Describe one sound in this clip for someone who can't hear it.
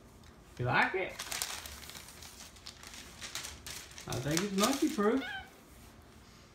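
Wrapping paper rustles and crinkles.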